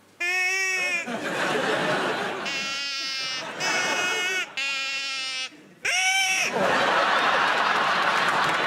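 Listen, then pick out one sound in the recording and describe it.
A crowd laughs loudly.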